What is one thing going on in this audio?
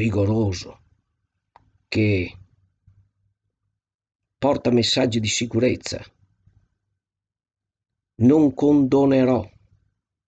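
An older man speaks calmly in bursts over an online call.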